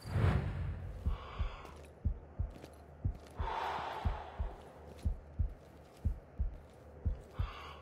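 Footsteps thud at an even pace on hard ground.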